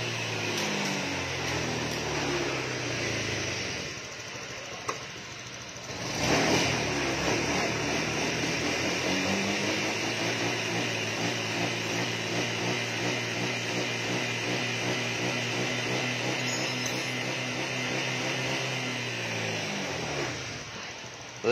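A scooter engine idles with a steady low hum.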